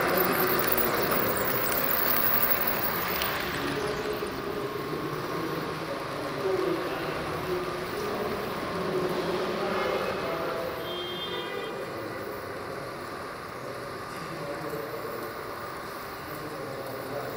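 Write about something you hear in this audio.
A model train rumbles and clatters along its track.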